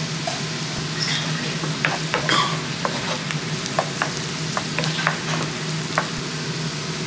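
A wooden spoon scrapes and taps against a pan.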